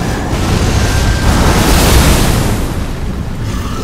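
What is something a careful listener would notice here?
An explosion bursts with a roaring blast.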